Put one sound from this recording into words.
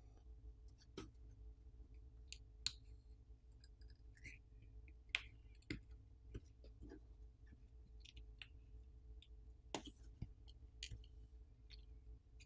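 A plastic pry tool clicks and taps faintly against a phone's frame.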